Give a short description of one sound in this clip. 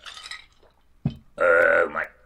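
A glass is set down on a table.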